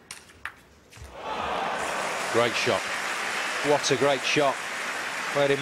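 A large crowd cheers and applauds in an echoing hall.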